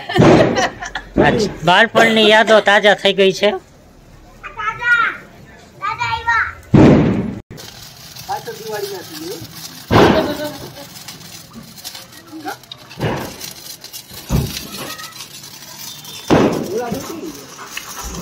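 Sparklers fizz and crackle.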